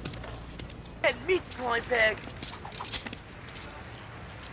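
A young man shouts aggressively.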